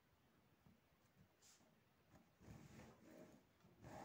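A pen scratches lightly across paper.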